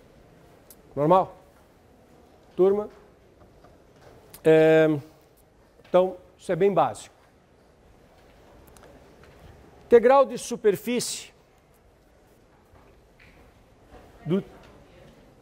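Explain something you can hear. A middle-aged man speaks calmly in short phrases.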